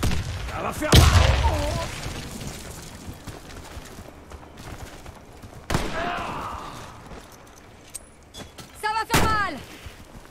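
Gunshots bang sharply.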